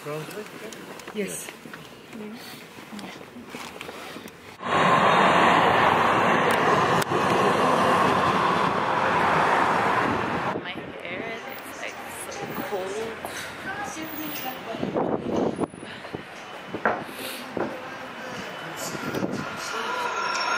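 A young woman talks close by.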